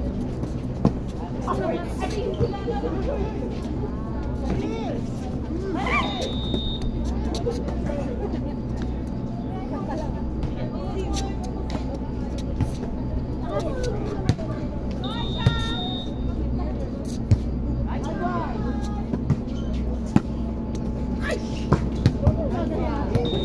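Young women and men call out and shout to each other outdoors.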